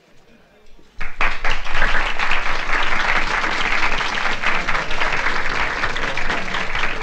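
A crowd applauds loudly.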